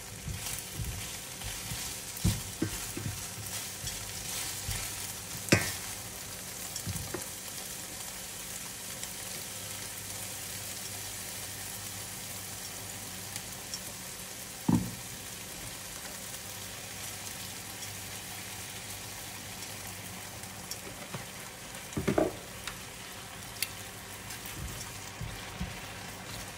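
Meat sizzles steadily in a hot frying pan.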